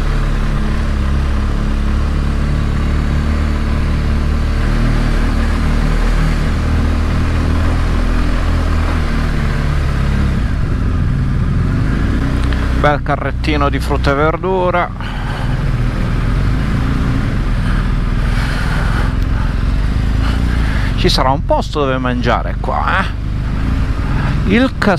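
A motorcycle engine rumbles low and steady at slow speed.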